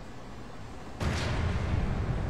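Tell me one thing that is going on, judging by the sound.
A heavy metal door swings open.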